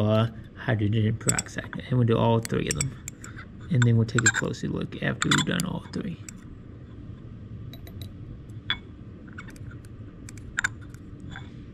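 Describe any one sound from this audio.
Glass clinks lightly as a tube is handled.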